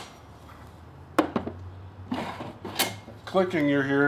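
A wooden drawer slides out and knocks.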